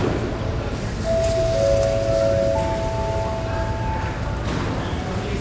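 A chime of three tones rings over a loudspeaker.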